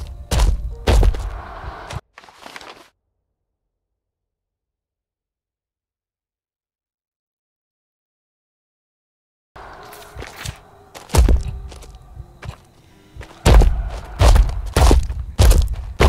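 Footsteps crunch over rubble and debris.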